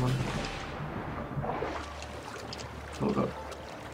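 Water splashes as a swimmer strokes through it.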